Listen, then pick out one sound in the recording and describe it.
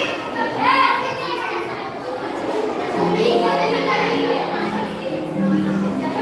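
Young children chatter nearby.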